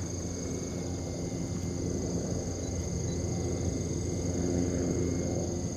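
Wind blusters steadily outdoors.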